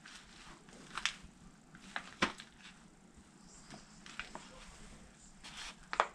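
Boot heels thump on a floor.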